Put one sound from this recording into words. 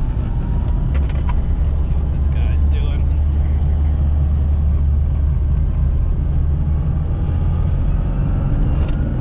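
A small car engine drones steadily from inside the cabin.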